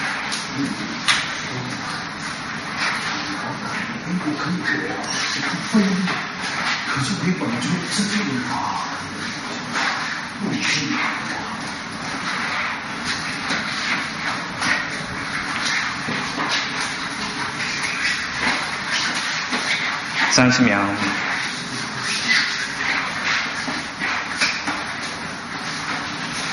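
Arms slap and knock against each other in quick bursts.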